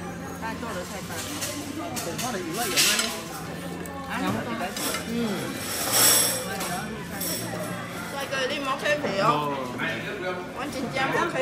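Chopsticks click against bowls and plates.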